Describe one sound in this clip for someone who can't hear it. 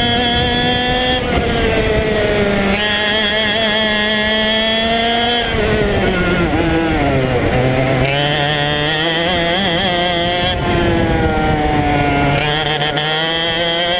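A small kart engine buzzes loudly close by, its pitch rising and falling as it speeds up and slows down.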